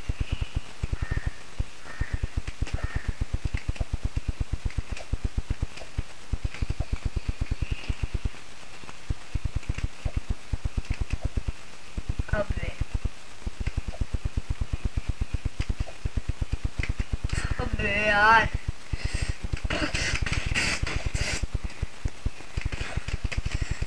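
Quick footsteps patter steadily in a video game.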